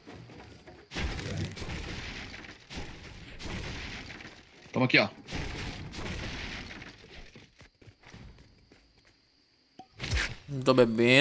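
A pickaxe thuds repeatedly against wood.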